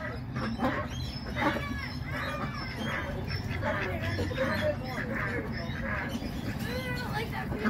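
Water splashes as ducks paddle and flap.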